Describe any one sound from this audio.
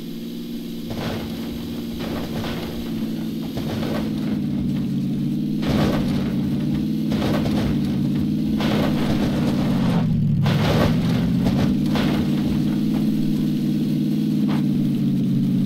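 Tyres bump and rattle over uneven ground.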